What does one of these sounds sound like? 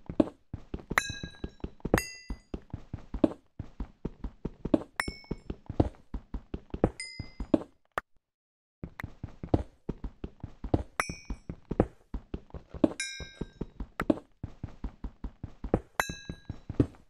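Blocks break with a sharp crack and chiming pops.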